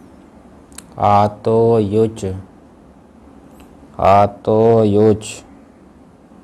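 An elderly man chants slowly.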